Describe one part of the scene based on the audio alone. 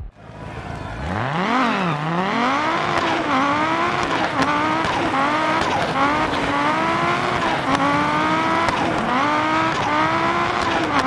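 A racing car engine revs hard and roars, rising and falling in pitch through the gear changes.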